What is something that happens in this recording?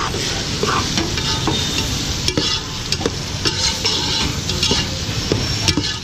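A metal spoon stirs and clinks against a metal pot.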